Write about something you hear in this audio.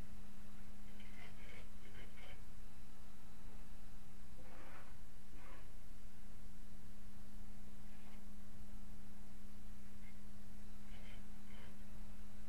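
A worker scrapes at a ceiling in short bursts.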